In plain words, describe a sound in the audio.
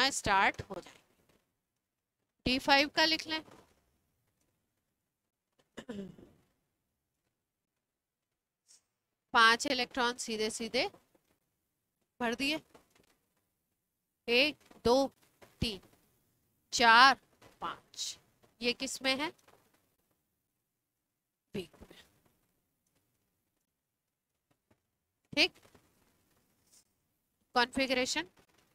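A woman speaks calmly in short phrases through a clip-on microphone.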